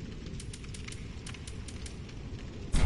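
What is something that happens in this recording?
Armored footsteps clank quickly on stone.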